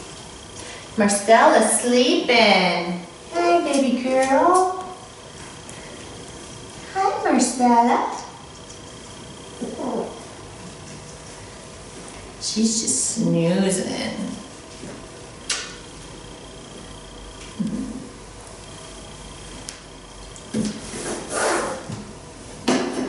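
A woman speaks close by in a high, sing-song, affectionate voice.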